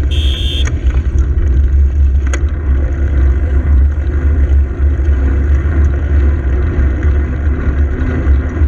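Cars drive slowly past close by.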